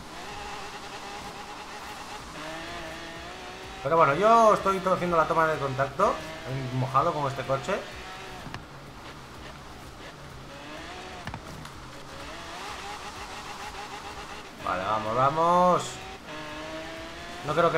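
A racing car engine roars and whines steadily.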